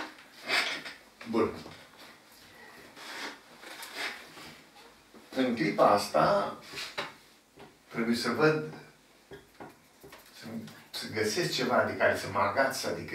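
An elderly man speaks calmly and clearly, explaining something.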